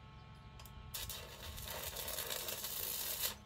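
An electric welding arc crackles and hisses.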